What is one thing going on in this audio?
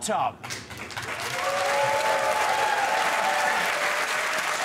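A studio audience cheers and applauds.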